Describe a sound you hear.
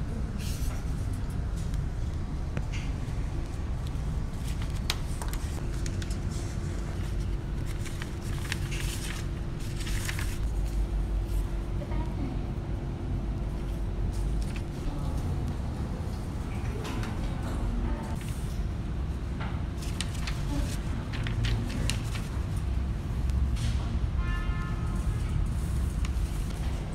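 Pens scratch on paper.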